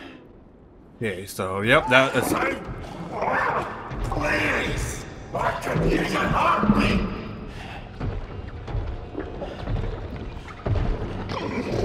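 A young man exclaims with animation close to a microphone.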